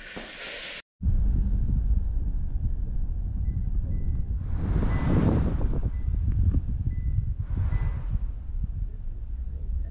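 A car engine rumbles low and steady as traffic crawls.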